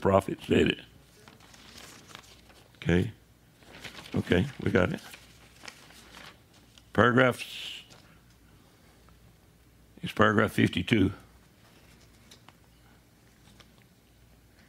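Paper pages rustle as they turn.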